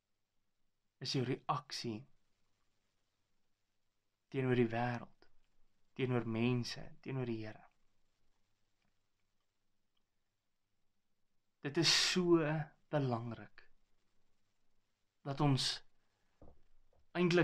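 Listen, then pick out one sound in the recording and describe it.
A young man speaks calmly and close by, with pauses between phrases.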